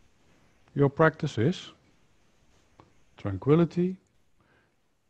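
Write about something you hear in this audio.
A middle-aged man speaks calmly and clearly into a close microphone, in short phrases.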